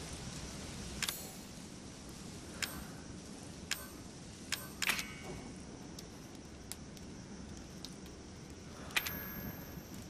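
Short, sharp menu clicks sound now and then.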